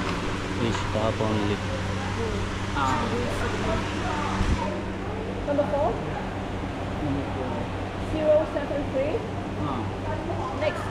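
A man talks nearby in a relaxed way.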